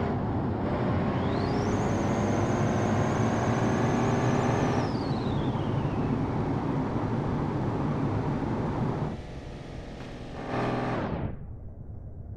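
A truck engine roars at high speed.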